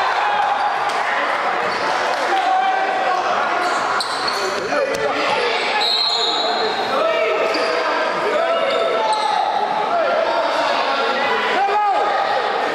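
Young players call out to each other.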